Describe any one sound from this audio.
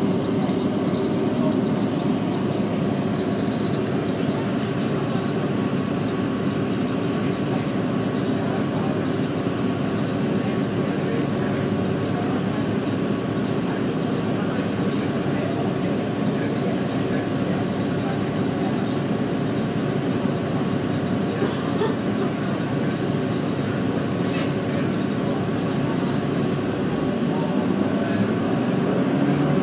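A bus engine hums steadily from inside.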